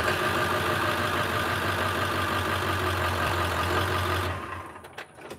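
A truck engine idles nearby, then shuts off.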